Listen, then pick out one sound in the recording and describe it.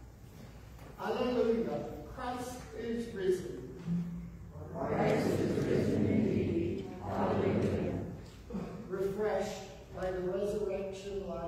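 A group of people chant together in unison, echoing in a large hall.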